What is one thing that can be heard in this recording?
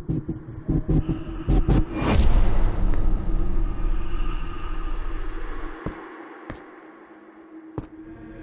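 Footsteps tap on a tiled floor.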